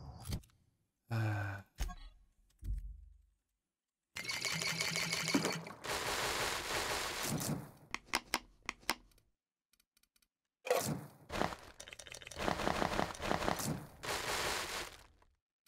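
Short soft clicks sound as items are picked in a game menu.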